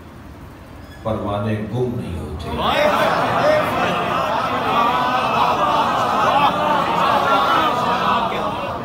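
A man speaks loudly through a microphone and loudspeakers in an echoing hall.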